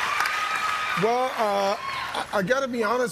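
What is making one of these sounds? A young woman laughs and speaks happily into a microphone.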